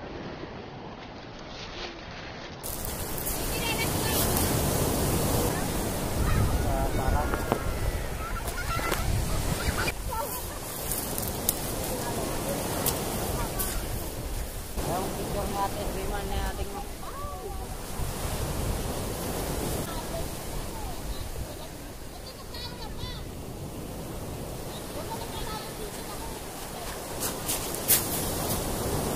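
Waves wash and roll onto a pebble beach nearby.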